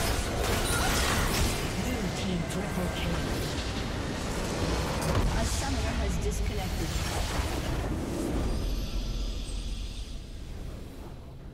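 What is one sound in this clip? Magical blasts and explosions crash in a fierce game battle.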